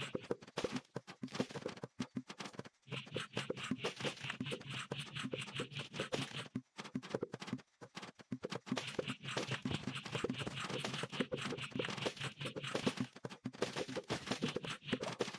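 Cartoon plants fire rapid popping shots with icy whooshes.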